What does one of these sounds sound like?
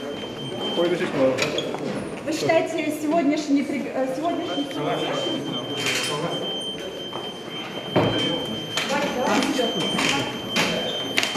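A crowd of people talk and move about in the background.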